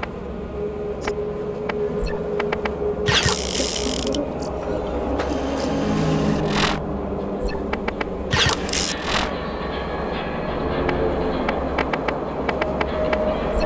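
Short electronic blips sound as a game menu is scrolled.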